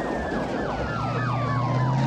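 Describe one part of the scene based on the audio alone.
Tyres skid on gravel.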